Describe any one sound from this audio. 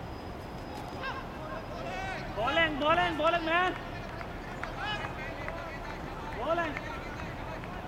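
Men shout loudly outdoors.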